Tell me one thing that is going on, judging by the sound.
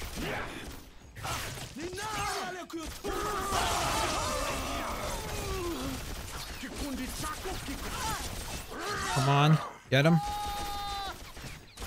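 Blades swish and strike in a close fight.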